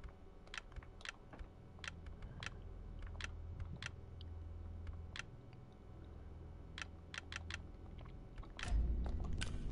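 Menu selections click sharply, one after another.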